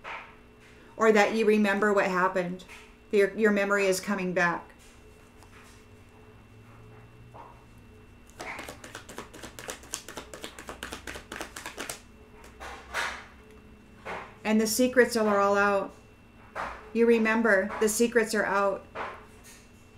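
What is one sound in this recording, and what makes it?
A middle-aged woman speaks with animation, close to the microphone.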